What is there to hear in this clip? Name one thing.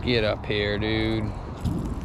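A fishing reel clicks as it is handled.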